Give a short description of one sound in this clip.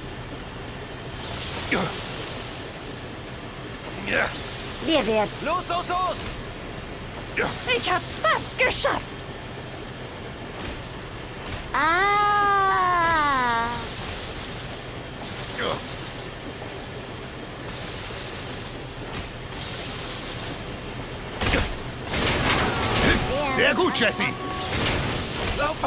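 Crates rumble along a moving metal conveyor belt.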